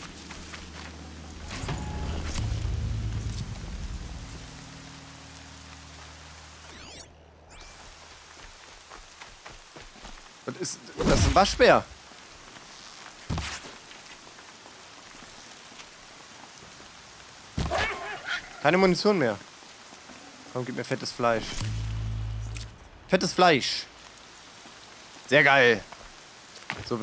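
Footsteps rustle through grass and brush.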